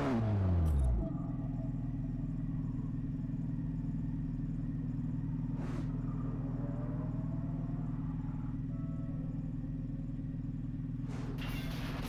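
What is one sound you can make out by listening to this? A car engine idles with a steady low hum.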